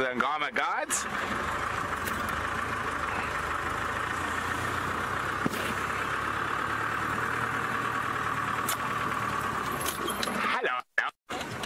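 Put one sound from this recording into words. A vehicle engine hums steadily as it drives along.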